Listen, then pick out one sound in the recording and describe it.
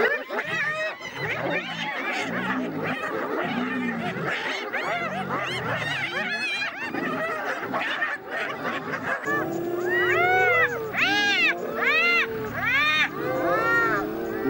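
Lions growl and snarl.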